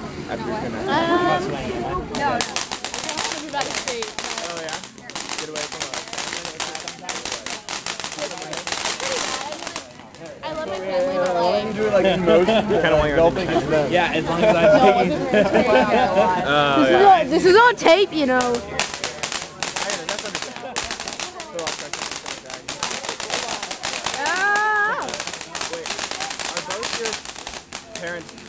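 A firework fountain hisses and sprays sparks.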